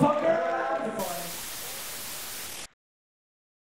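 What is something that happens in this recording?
Static hisses steadily and then cuts off.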